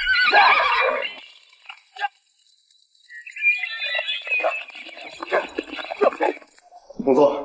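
Horses gallop, their hooves thudding on soft ground.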